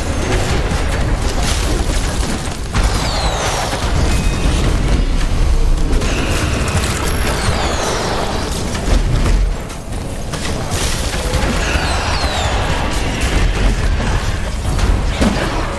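Magic blasts and laser beams zap and crackle in a fierce battle.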